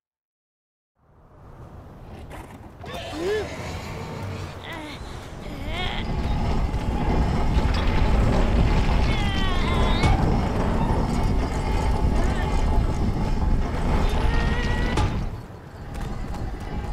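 A heavy metal cage rumbles and creaks as it moves.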